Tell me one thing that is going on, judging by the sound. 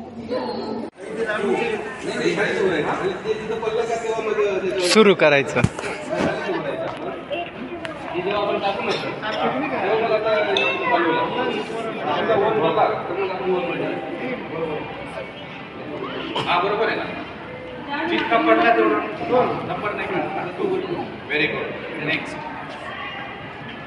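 A woman talks outdoors.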